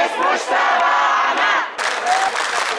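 A woman shouts slogans close by.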